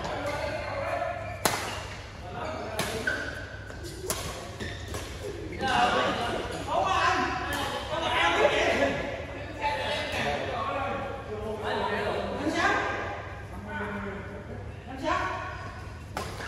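Several young men talk and call out during play.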